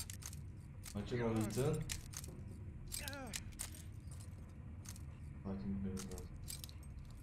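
A young man talks in short bursts close to a microphone.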